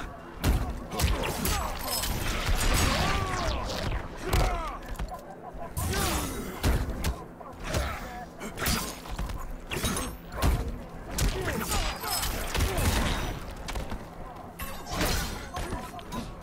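Magic bursts whoosh and crackle.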